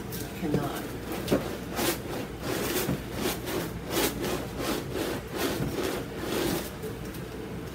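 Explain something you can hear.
A brush dabs and scrubs against a canvas.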